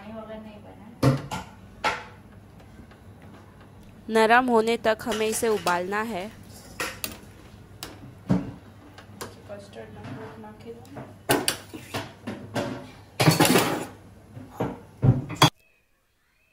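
A metal ladle clinks against a steel pot.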